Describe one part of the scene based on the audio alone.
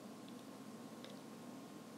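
A small comb brushes through a doll's hair.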